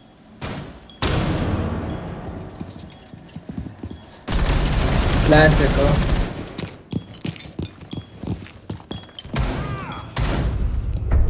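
Gunshots crack in loud bursts.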